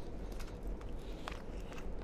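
A young man sips through a straw close to a microphone.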